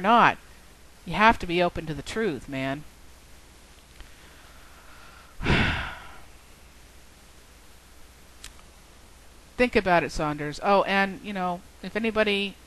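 A woman speaks calmly into a headset microphone, close up, with pauses.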